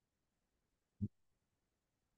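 A marker taps against a board.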